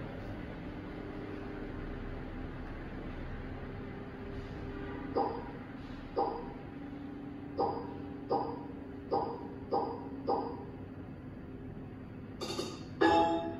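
A slot machine plays a steady electronic tune.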